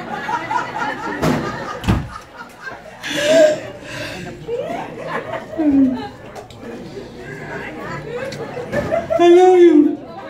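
A woman sings loudly into a microphone, heard through loudspeakers.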